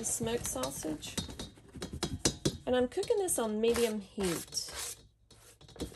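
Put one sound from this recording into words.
A plastic cutting board scrapes against the rim of a metal pot.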